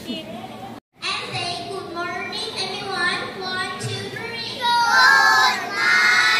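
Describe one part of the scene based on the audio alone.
A group of young children sing loudly together.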